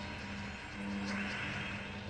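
Bright chiming game effects ring out as pieces match.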